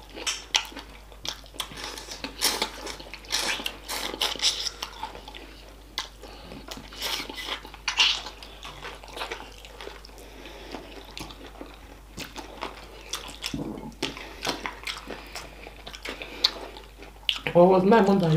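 A woman chews food with wet smacking sounds close to the microphone.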